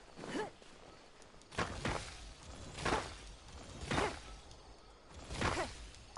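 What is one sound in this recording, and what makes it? A blade swishes through the air in quick, repeated strikes.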